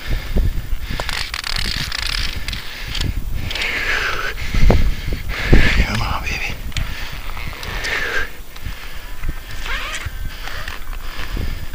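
Slushy ice crackles and swishes as a fishing line is pulled up through a hole in the ice.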